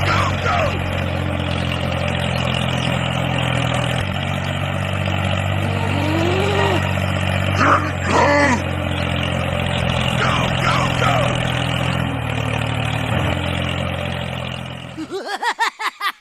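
A toy tractor's motor hums steadily.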